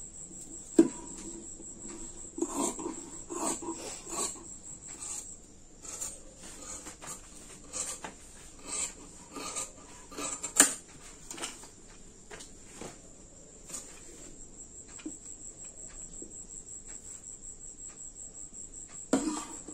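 Cloth rustles as it is folded and smoothed by hand.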